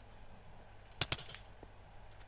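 A sword strikes with short sharp hits.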